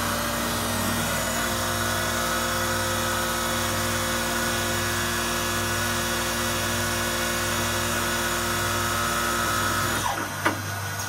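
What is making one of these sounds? Coolant sprays and splashes onto metal.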